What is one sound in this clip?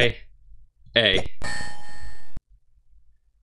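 An electronic game tone sounds as letters are revealed.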